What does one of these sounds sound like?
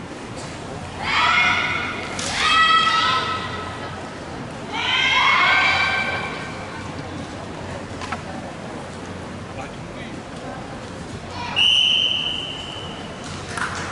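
Young women shout sharp, drawn-out cries in a large echoing hall.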